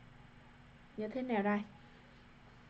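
A man speaks briefly and calmly into a close microphone.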